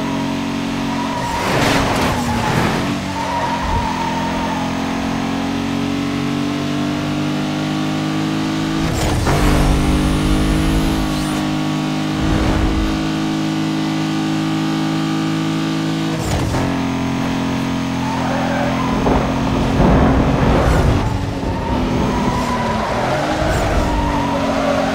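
Tyres hiss over a snowy road.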